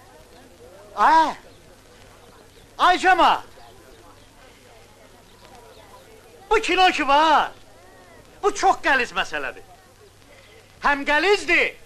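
A man shouts loudly in short bursts with pauses between them.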